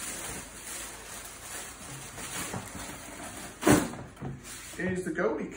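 Tissue paper rustles and crinkles as it is pulled about.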